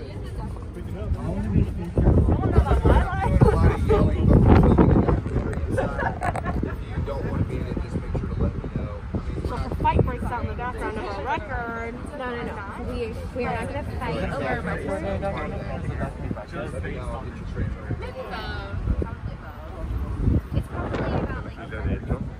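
A crowd of people murmurs and chatters nearby outdoors.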